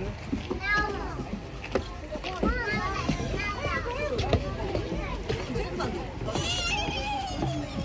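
Footsteps thud on a wooden platform.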